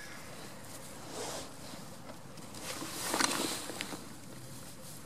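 A goat rustles and munches through dry straw.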